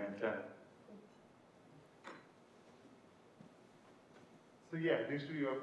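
A man speaks in a large echoing room, heard from a distance.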